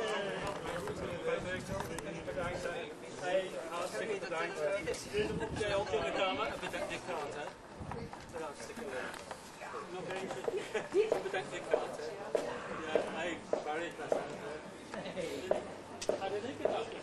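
Several men chat with each other close by.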